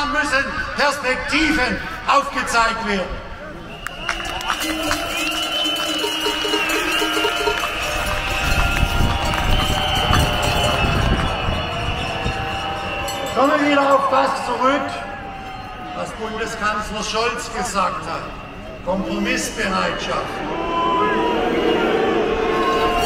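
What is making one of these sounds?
A crowd chatters nearby outdoors.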